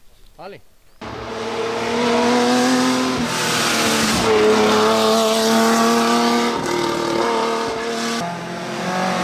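A racing car engine roars loudly and revs as it climbs past.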